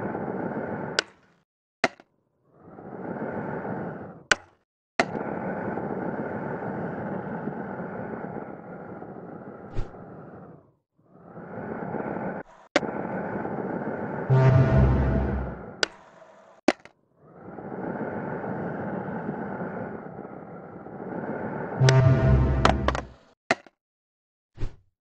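A skateboard clacks sharply as it pops and lands.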